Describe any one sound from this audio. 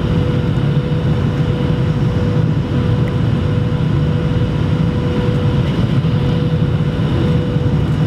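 Air rushes past with a low, steady rumble.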